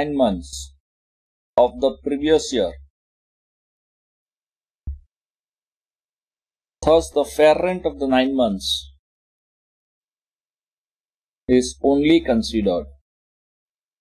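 A man speaks calmly and explains, close to a microphone, with long pauses.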